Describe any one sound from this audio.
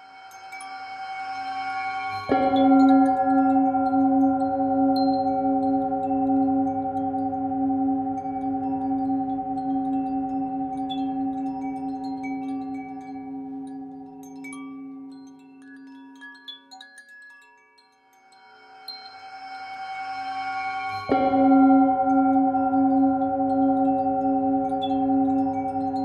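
A metal singing bowl rings with a deep, steady humming tone that swells, fades and swells again.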